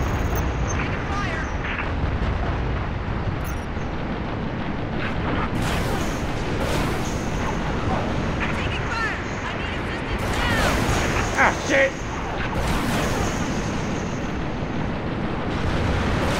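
Cannons fire rapid bursts of shots.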